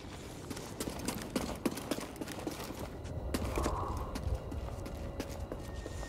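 Footsteps crunch quickly on rocky ground.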